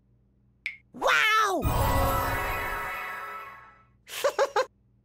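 A springboard launches something with a springy boing.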